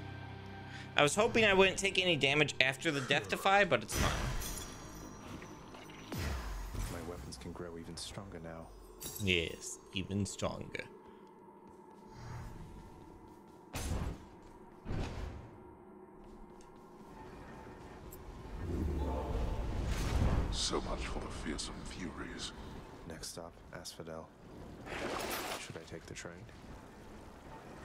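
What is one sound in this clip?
Video game sound effects clang and chime.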